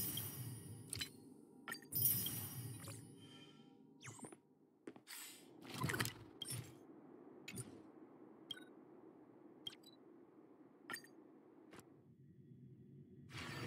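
Interface clicks and chimes sound as menus open and close.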